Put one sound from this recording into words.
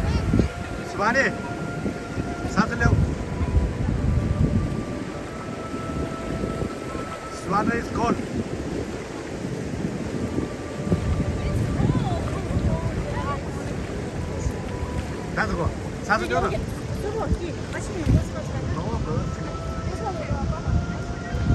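Young women talk and laugh nearby.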